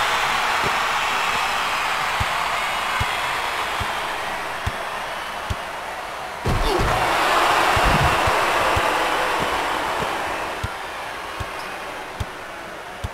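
A basketball thumps as it bounces on the court.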